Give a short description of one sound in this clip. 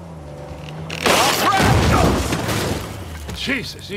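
A vehicle crashes through wooden planks with a loud crunch.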